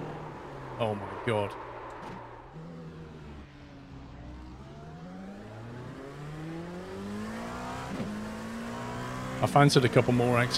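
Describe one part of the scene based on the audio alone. A racing car engine revs up and down through the gears.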